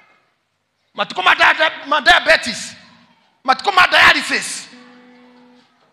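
A man speaks loudly and with animation into a microphone over loudspeakers in an echoing hall.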